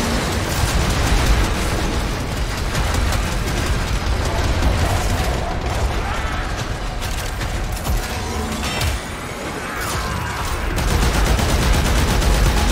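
Energy blasts crackle and whoosh.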